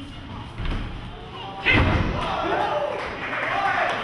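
A fighter thumps down onto the mat.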